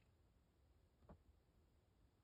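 A small plastic cap clicks as it is twisted between fingers.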